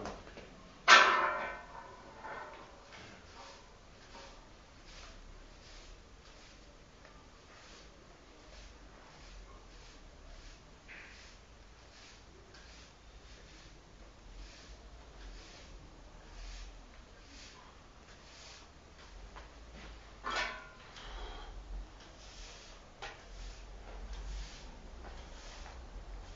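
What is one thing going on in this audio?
A broom sweeps across a hard floor with soft, repeated swishes.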